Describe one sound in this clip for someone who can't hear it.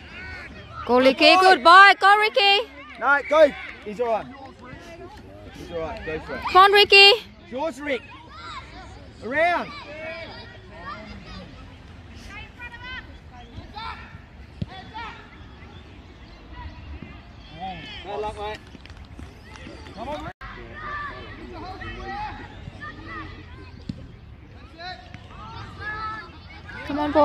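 Children shout and cheer outdoors at a distance.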